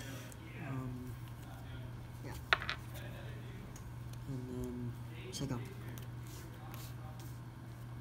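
Playing cards tap and slide softly on a cloth mat.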